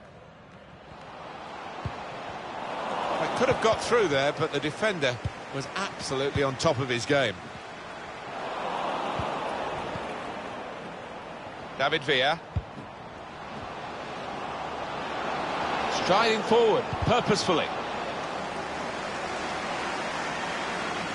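A stadium crowd cheers and roars, swelling and fading.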